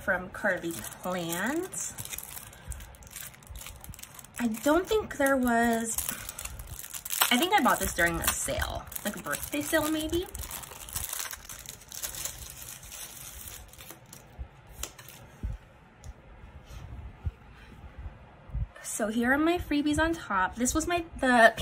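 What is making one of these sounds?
A plastic sleeve crinkles as it is handled.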